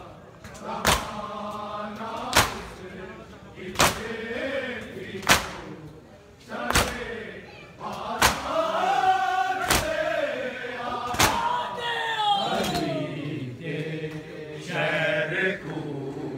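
Men beat their chests in a slow, heavy rhythm.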